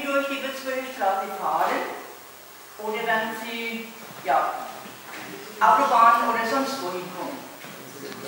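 An elderly man speaks loudly in an echoing hall.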